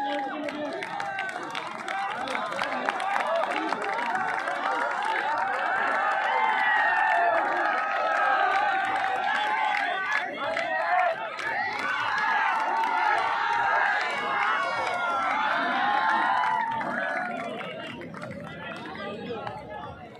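A large outdoor crowd shouts and cheers loudly.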